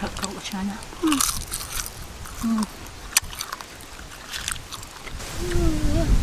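A girl chews crunchy food close by.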